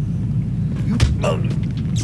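A blow lands with a heavy thud.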